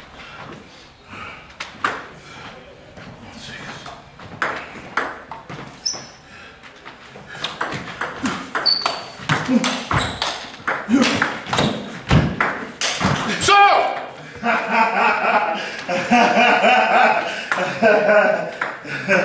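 A table tennis ball clicks back and forth on paddles and table in an echoing hall.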